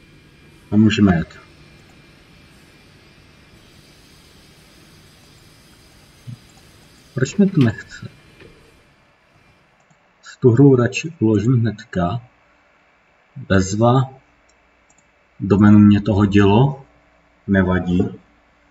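A man speaks calmly in short bursts into a microphone.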